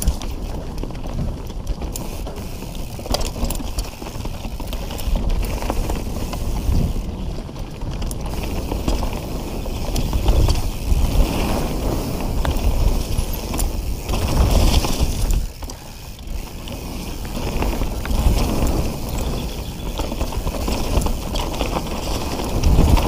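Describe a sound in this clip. Bicycle tyres roll and crunch over a dry leafy dirt trail.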